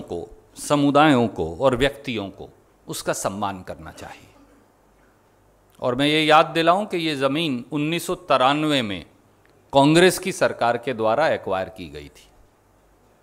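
A man speaks firmly into a microphone, in short bursts with pauses.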